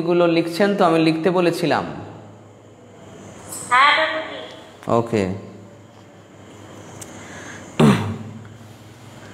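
A middle-aged man chants in a melodic voice close to a microphone, with pauses between phrases.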